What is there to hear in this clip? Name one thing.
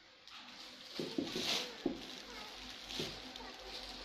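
Soft knocks and thumps sound as bundles are set down.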